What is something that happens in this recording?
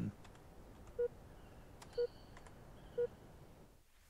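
Short electronic menu beeps sound.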